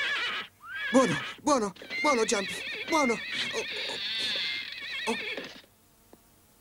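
A young boy cries out in alarm.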